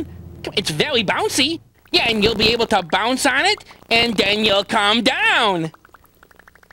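A child-like voice talks with animation, close by.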